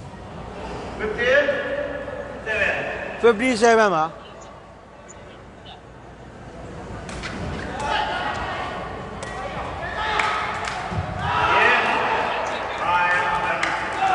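Young men shout loudly to one another in a large echoing hall.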